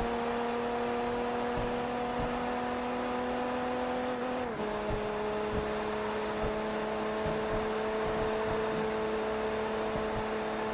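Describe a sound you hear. Tyres roar on a track.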